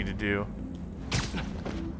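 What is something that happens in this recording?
A web line shoots out with a sharp swish.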